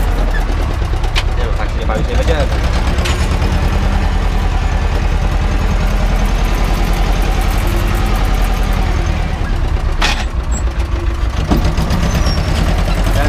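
Metal parts of a tractor cab rattle and clank.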